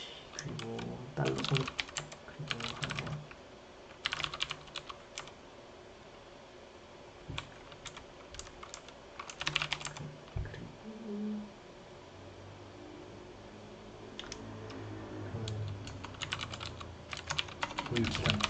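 Keyboard keys click in quick bursts.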